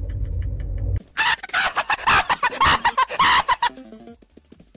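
A teenage boy screams loudly into a headset microphone.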